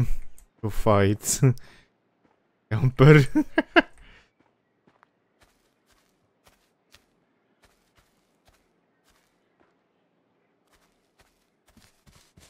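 Footsteps run softly over grass and dirt.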